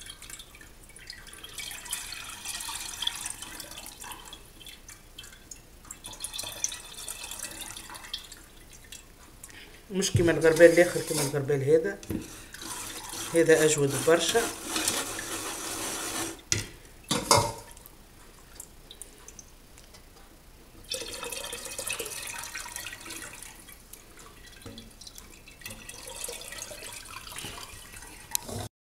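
Thick batter pours and splashes into a sieve.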